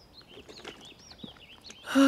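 A young man gulps down a drink.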